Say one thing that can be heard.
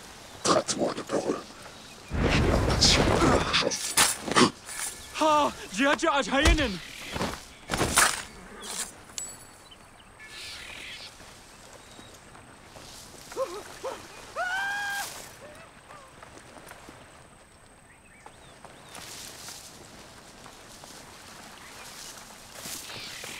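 Tall dry grass rustles as someone creeps through it.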